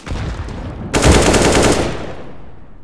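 Rifle shots crack in a rapid burst.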